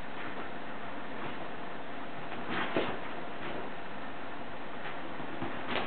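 A cat pounces and lands with a soft thud on a bedspread.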